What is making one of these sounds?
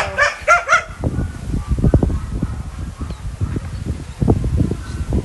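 A dog scuffles and rustles on sandy ground.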